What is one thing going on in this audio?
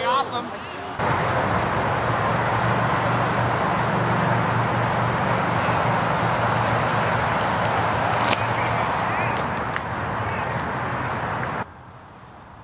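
Wind rushes loudly across the microphone outdoors.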